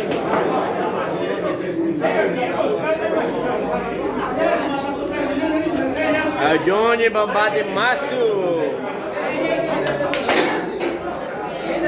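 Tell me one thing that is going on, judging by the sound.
Several young men talk and call out loudly nearby.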